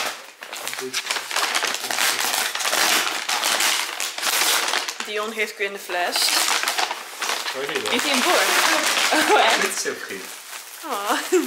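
Paper crinkles and rustles loudly close by.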